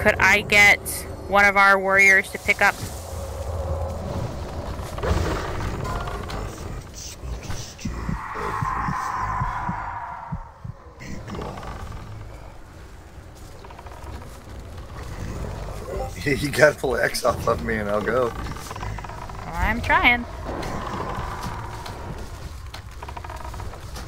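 Magic spells whoosh and crackle in a busy battle.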